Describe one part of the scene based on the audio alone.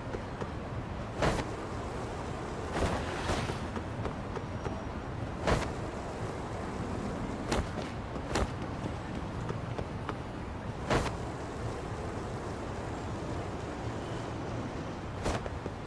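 Skateboard wheels roll over rough pavement.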